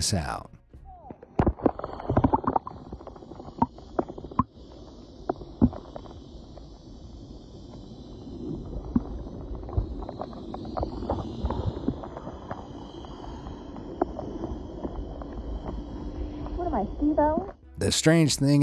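Water crackles and clicks softly underwater.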